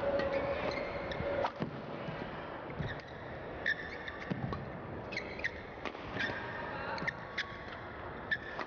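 A shuttlecock is struck back and forth with sharp racket hits.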